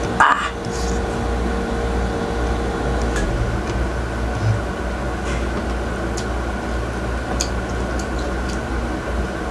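A man chews food with soft wet smacking sounds.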